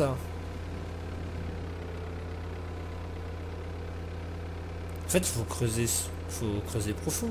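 An excavator engine hums steadily.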